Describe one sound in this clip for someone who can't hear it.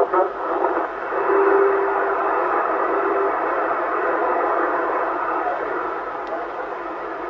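Radio static hisses steadily as the dial is turned.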